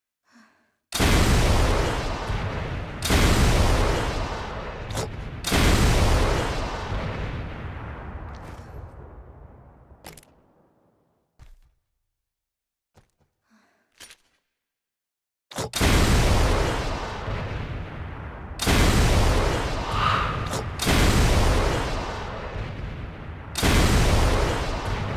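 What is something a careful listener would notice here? A powerful rifle fires loud booming shots with rumbling echoes.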